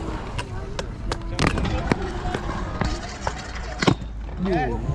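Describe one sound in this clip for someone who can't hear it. A scooter lands with a sharp clack on concrete.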